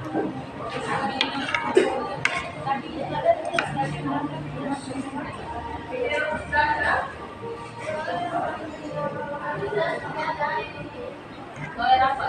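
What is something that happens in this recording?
A fork and spoon clink against a plate.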